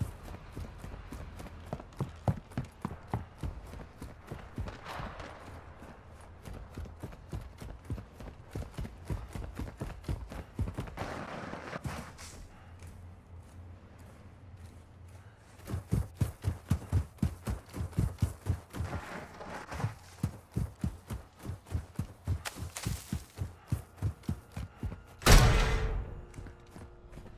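Quick footsteps thud on the ground.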